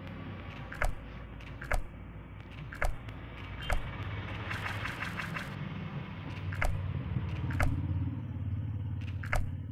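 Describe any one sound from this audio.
Paper folds over with short, crisp swishes.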